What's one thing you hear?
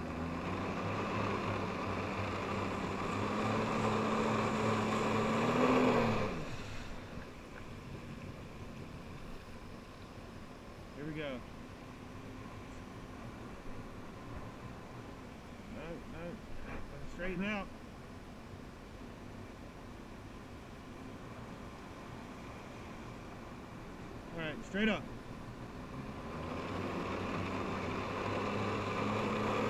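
A jet ski engine roars steadily, then cuts out and later starts roaring again.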